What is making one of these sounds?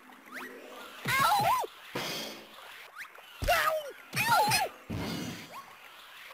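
Cartoon sound effects whoosh and zap during a fight.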